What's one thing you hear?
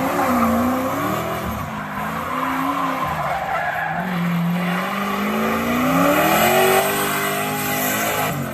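Tyres squeal and screech on asphalt as a pickup truck drifts.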